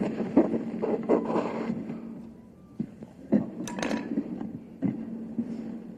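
A microphone is bumped and knocked while being adjusted.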